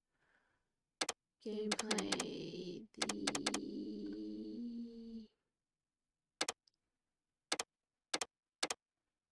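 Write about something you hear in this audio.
Short menu clicks tick a few times.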